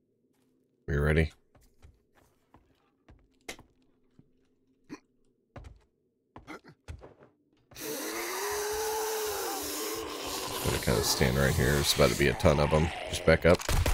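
Footsteps thud on wooden floors and stairs.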